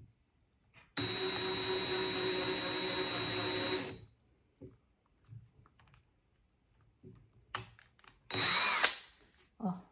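A cordless drill whirs steadily as it drives into wood.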